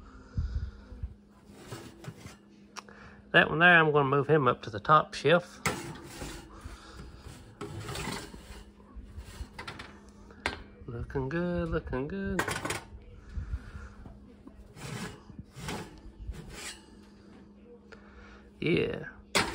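Glass pie dishes clink and scrape against a metal oven rack.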